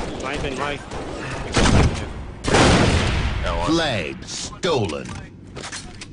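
Young men talk and shout excitedly close by.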